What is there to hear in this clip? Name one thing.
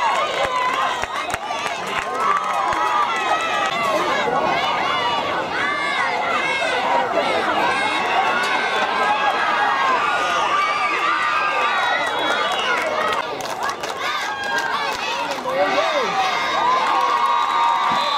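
A crowd of spectators outdoors cheers and shouts with excitement.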